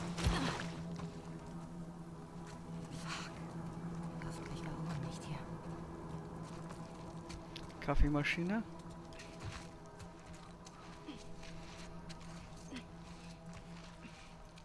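Footsteps crunch softly on a rough ground.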